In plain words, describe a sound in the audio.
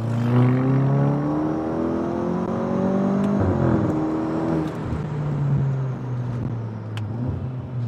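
A car engine hums and rises in pitch as the car speeds up, dropping at a gear change.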